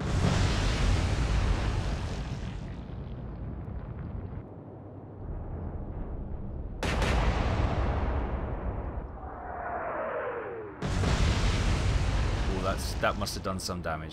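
Shells explode into the sea with deep, heavy booms.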